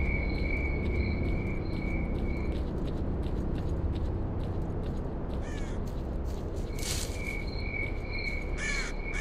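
Footsteps crunch slowly over rubble and dirt.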